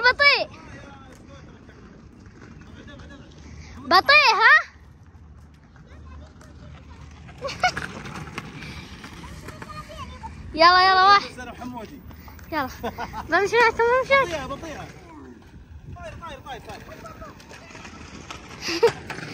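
A young child squeals and shouts excitedly nearby.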